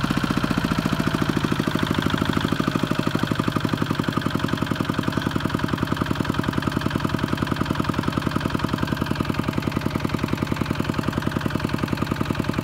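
A small diesel engine chugs steadily and rapidly close by.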